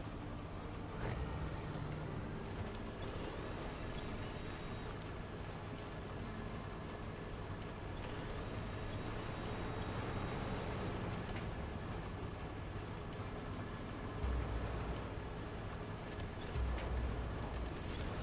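A truck's body thumps and knocks against rocks.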